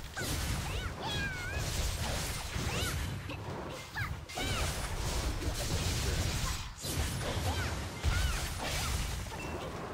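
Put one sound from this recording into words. Magic blasts burst with a loud whoosh.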